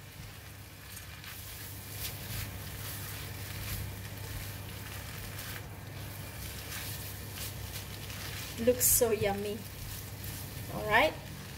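Noodles sizzle and scrape as a spatula tosses them in a hot pan.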